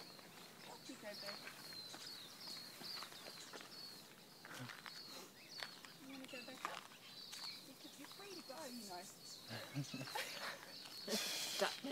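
A man talks calmly nearby outdoors.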